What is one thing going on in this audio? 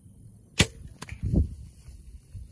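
An arrow strikes with a dull thud.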